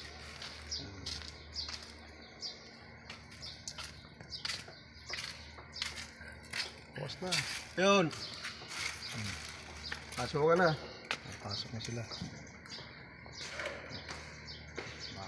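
Footsteps crunch on dry leaves and dirt.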